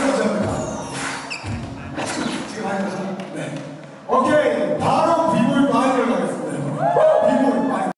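Music with a strong beat plays loudly over loudspeakers in a large hall.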